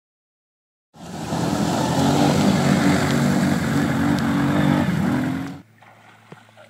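A quad bike engine roars as it splashes through a river.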